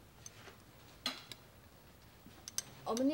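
Utensils clink softly against dishes.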